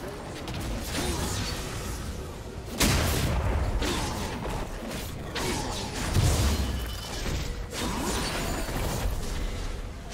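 Video game spell effects whoosh and crackle in bursts.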